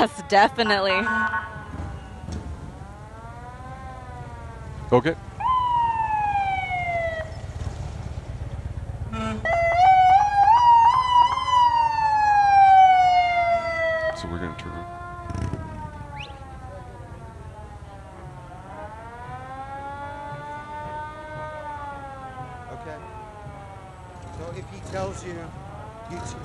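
Sirens wail close by, rising and falling in pitch.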